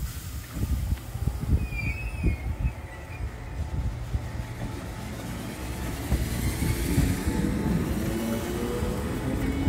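A train rumbles slowly past outdoors.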